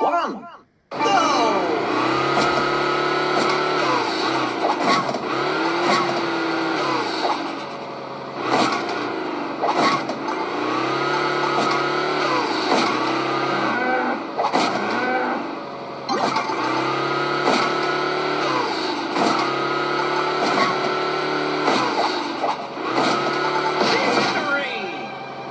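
A small truck engine revs high and drops again, over and over.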